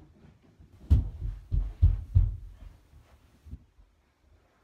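Low thumps and knocks sound on a carpeted floor.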